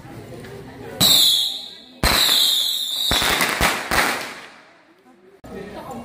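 Firecrackers crackle and bang loudly nearby.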